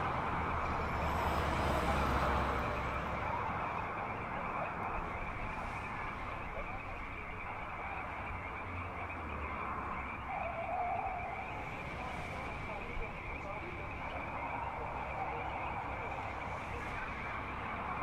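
A film soundtrack plays through a car radio, muffled and hissy.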